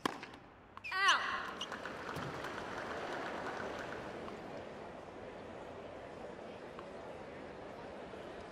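A large crowd cheers and applauds in a big arena.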